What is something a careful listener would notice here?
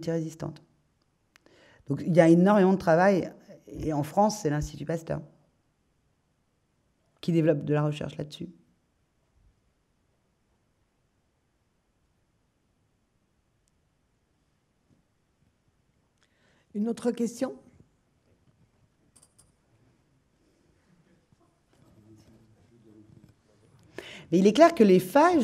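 A woman speaks calmly into a microphone, with long pauses.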